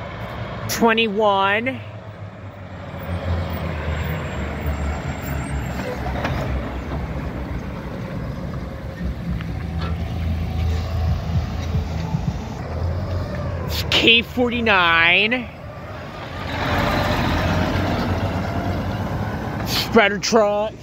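A truck's air horn blasts loudly, bending in pitch.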